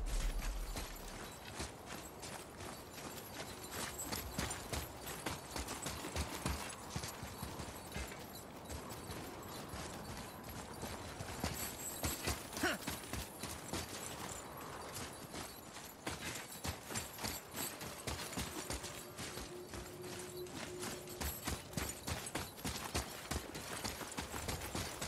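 Heavy footsteps crunch on stone and gravel.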